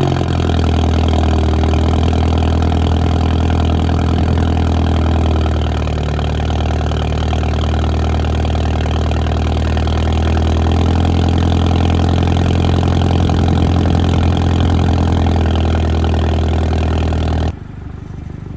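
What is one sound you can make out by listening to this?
A car engine idles with a deep, steady rumble close by.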